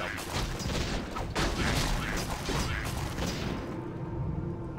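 Swords clash and spells crackle in a busy game battle.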